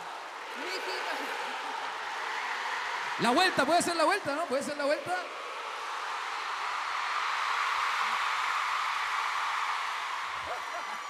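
A large crowd cheers and screams in a big echoing arena.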